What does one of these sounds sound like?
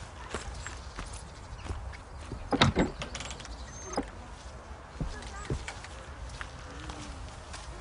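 Footsteps crunch on gravel outdoors.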